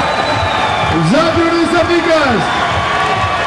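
A man shouts loudly in triumph.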